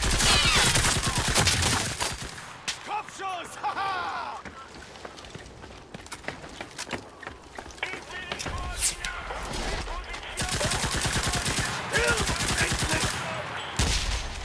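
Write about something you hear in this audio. A submachine gun fires rapid bursts close by.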